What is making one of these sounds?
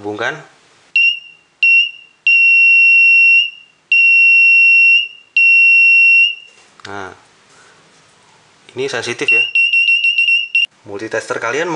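An electronic buzzer beeps in short and long bursts.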